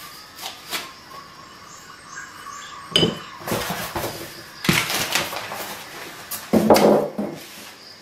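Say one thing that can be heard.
Foam packing squeaks and scrapes against cardboard.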